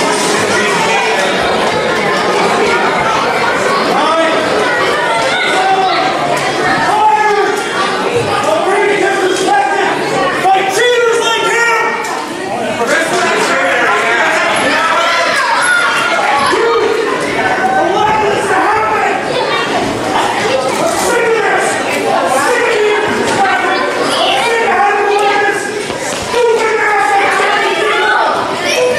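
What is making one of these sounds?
A crowd of men and women chatters and calls out in a large echoing hall.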